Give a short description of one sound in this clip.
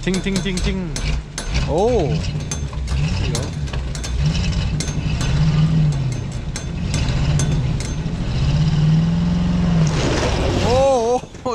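A truck engine idles and rumbles close by.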